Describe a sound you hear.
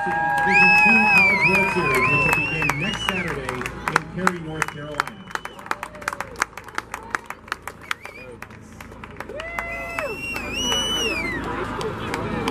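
A group of young men shout and cheer excitedly outdoors.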